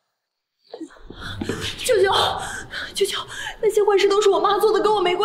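A young woman pleads loudly and emotionally, close by.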